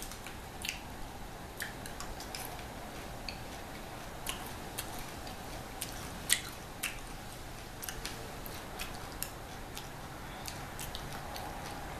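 A young woman's mouth clicks and smacks close to a microphone.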